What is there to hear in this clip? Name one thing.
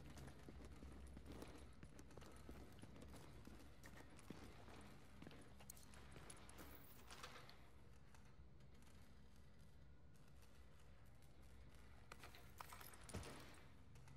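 Footsteps crunch over debris on a hard floor.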